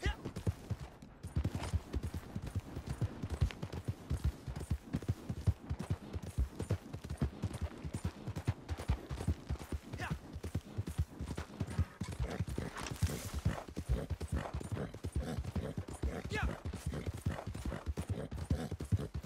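A horse gallops with rapid hoofbeats on a dirt trail.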